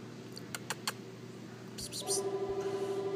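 A small bird gives short high chirps.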